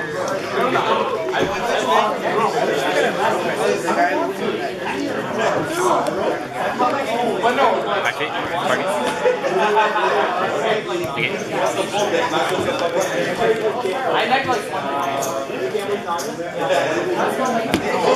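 Playing cards are shuffled and slid onto a table.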